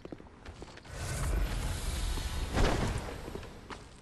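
Flames roar up in a short burst.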